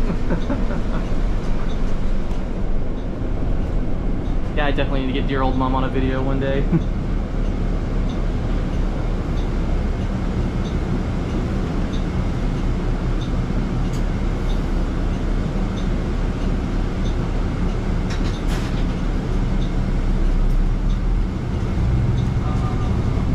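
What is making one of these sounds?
Loose fittings rattle and click inside a moving bus.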